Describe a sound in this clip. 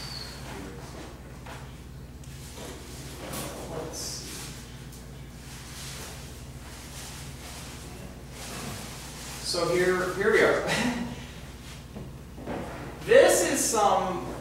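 A young man speaks calmly, heard from a short distance.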